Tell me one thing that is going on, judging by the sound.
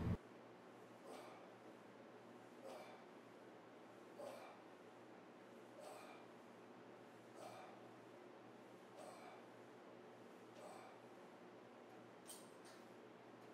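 A weight machine clunks softly with each repetition.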